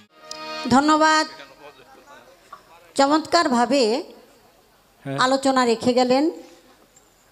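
A woman sings loudly through a microphone, in short phrases.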